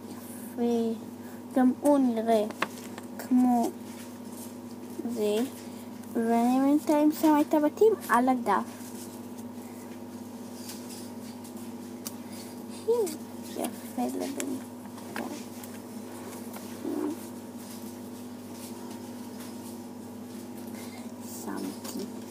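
A young girl talks close to the microphone with animation.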